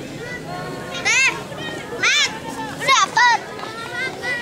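Young girls shriek and squeal with laughter.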